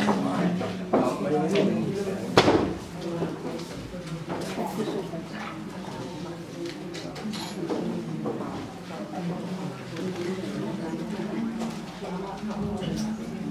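Several adults chat quietly nearby.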